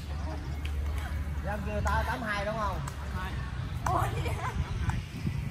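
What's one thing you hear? Women call out and chatter with animation.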